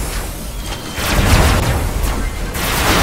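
An electric blast crackles and booms.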